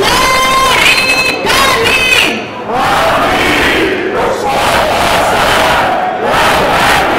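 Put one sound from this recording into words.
A crowd of marchers chants and shouts loudly outdoors.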